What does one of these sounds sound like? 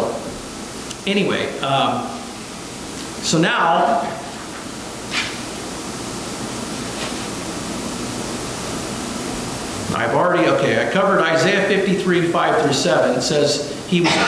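A middle-aged man speaks calmly into a microphone, reading out with pauses.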